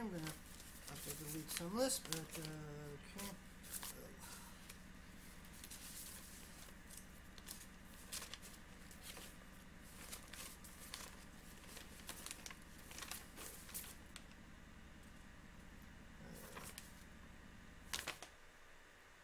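Sheets of paper rustle and crinkle close by.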